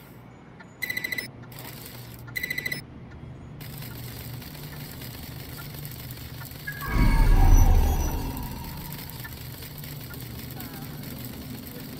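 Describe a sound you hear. A small robot's metal legs skitter and tap across a hard floor.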